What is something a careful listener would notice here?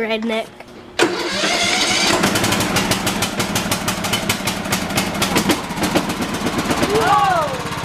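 A small petrol engine cranks and starts with a burst, then runs with a loud, steady rattling putter.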